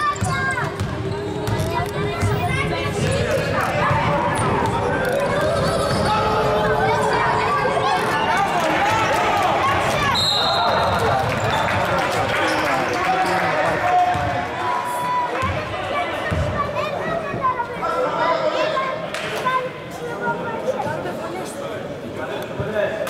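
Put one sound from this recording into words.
Players shout and call out to each other across the echoing hall.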